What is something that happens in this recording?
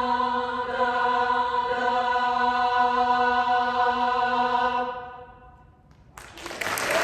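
A choir holds a final sung chord that rings out in a large echoing hall.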